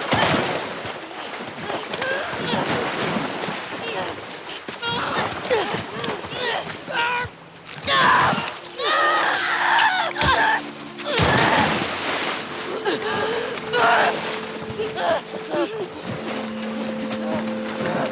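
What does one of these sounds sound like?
Water splashes and churns as bodies thrash in it.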